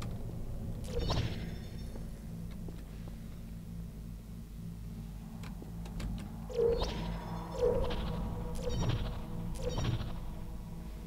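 A portal gun fires with a sharp electronic zap.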